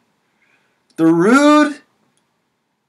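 A young man calls out loudly close to the microphone.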